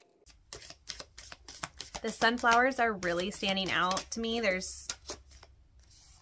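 Cards rustle and tap as they are shuffled.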